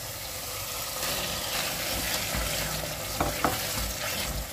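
Chunks of potato tumble into a pot with soft thuds.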